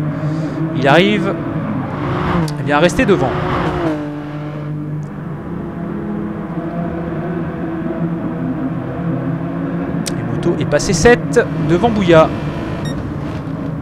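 Racing car engines roar steadily, rising and falling in pitch as the cars change gear.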